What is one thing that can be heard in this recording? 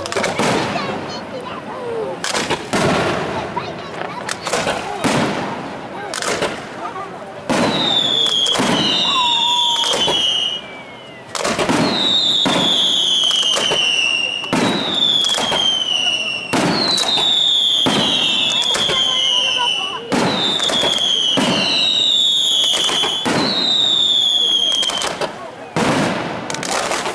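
Fireworks burst with loud booms and crackles.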